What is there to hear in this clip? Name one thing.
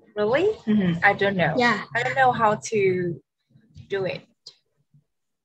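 A young girl speaks calmly over an online call.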